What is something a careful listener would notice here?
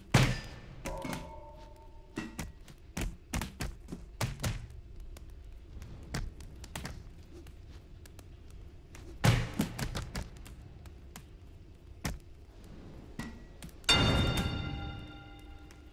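Blows land with dull thumps and knocks.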